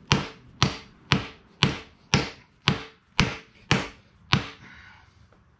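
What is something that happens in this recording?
A hand tool scrapes along a wooden axe handle in quick strokes.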